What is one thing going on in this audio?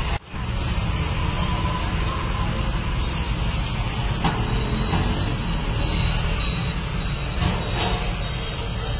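Metal tongs scrape and clatter against an oven tray.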